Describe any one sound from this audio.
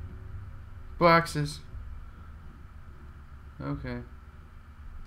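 A man speaks in short bursts into a close microphone.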